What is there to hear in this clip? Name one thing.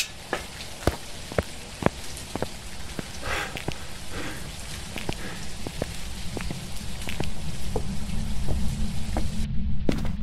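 Footsteps tread slowly along a path and into a building.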